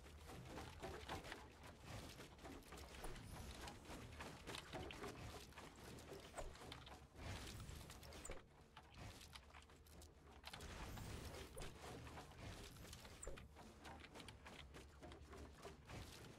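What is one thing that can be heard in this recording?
Wooden walls clatter and thud as they are quickly built.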